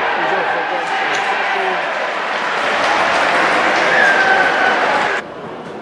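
Players shout and cheer outdoors on a field.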